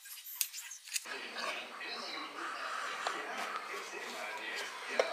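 A knife scrapes along the inside of a metal baking tin.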